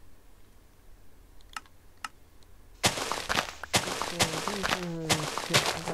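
Dirt blocks crunch as they are dug out.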